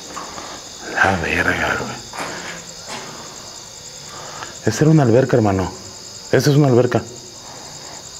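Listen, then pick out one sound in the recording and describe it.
A man talks loudly and with animation nearby.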